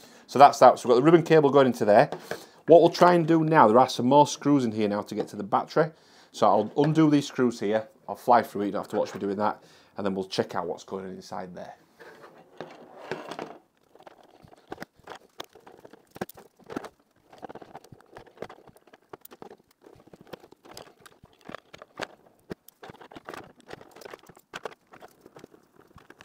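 Small plastic parts click and tap.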